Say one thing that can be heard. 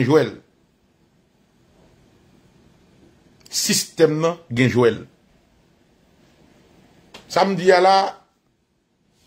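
A man speaks calmly and close up, in short bursts with pauses.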